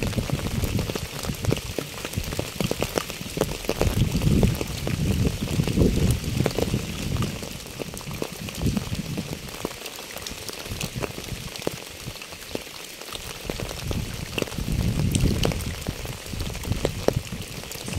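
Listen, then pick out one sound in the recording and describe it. Rain patters steadily on a wet path and puddles.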